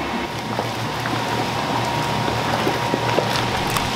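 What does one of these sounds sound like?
Water splashes in a metal pot.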